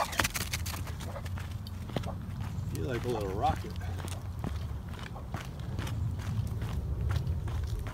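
A dog's paws patter on a dirt path.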